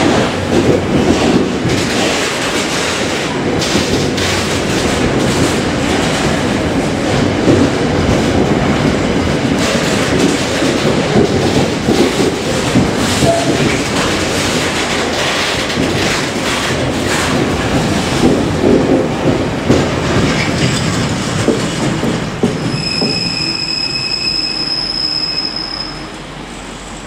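A long freight train rumbles past close by.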